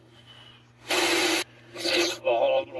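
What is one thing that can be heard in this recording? Loud static hisses briefly from a laptop speaker.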